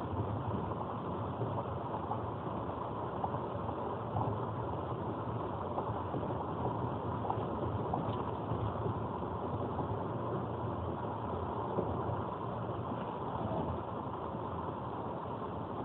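A car's engine hums steadily as it drives along at speed.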